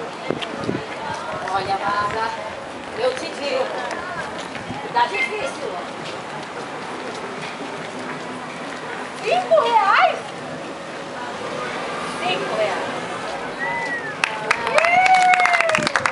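A woman speaks and calls out with animation, heard outdoors.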